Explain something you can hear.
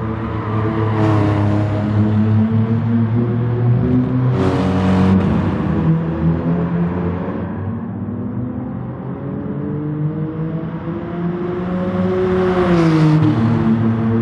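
A race car rushes past with a sudden whoosh.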